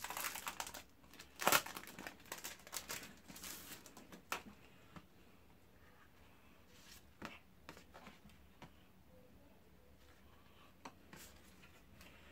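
Cards and paper sheets slide and tap against each other.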